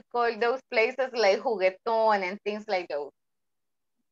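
A young woman speaks briskly over an online call.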